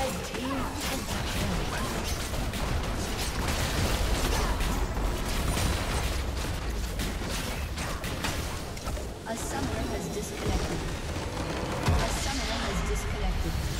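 Spells and blows crash and whoosh in a busy fight.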